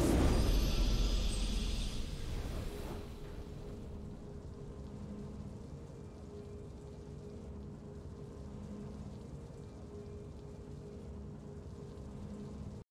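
A triumphant game fanfare swells loudly, then settles into soft, steady music.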